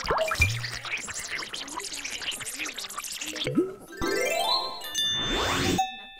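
Bubbles fizz and pop.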